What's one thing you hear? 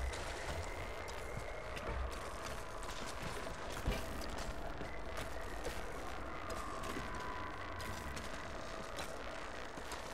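Footsteps splash and scuff along a walkway.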